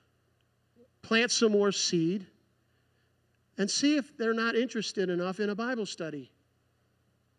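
A man speaks with animation into a microphone, heard over loudspeakers.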